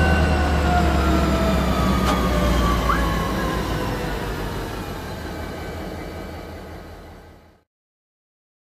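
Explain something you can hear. Train wheels roll over rails.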